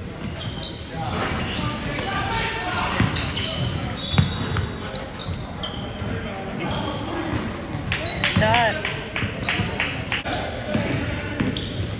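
Men shout and call out to one another across the court.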